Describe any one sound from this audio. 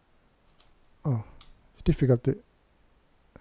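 A man speaks briefly and casually, close to a microphone.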